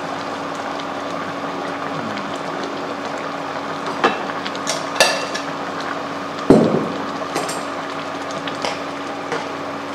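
A spoon stirs and knocks against a metal pot.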